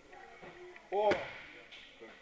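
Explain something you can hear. A body thuds onto a mat.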